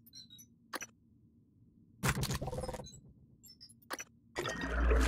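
Short interface clicks sound as a menu is used.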